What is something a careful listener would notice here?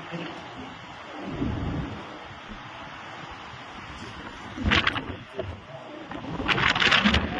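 Strong wind roars outdoors in loud gusts.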